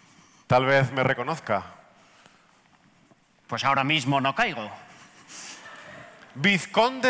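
A man speaks theatrically through a microphone in a large hall.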